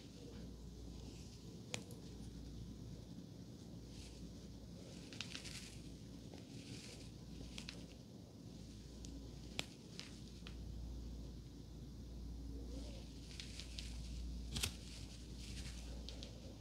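Fingers softly rustle and brush through hair, close up.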